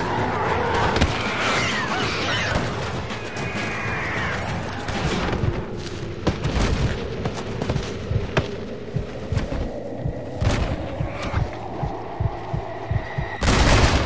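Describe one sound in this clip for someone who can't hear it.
Loud thumps and blasts go off now and then.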